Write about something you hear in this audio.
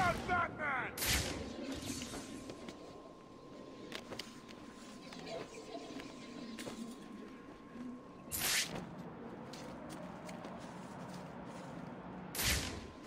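A heavy whoosh sweeps by in a sudden rush.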